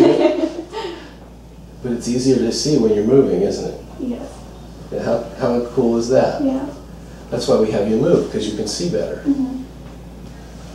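An older man speaks calmly and explains nearby.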